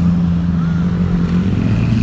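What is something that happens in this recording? Motorbike engines pass close by.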